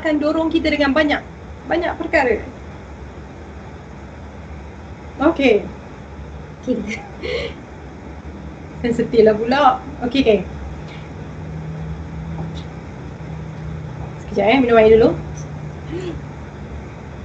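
A woman speaks calmly and casually into a microphone, in short bursts with pauses.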